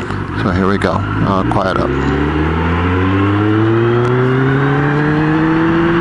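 A motorcycle engine hums and then rises steadily in pitch as it speeds up.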